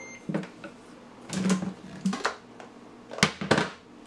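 A plastic lid clicks and rattles as it is pulled off a blender jar.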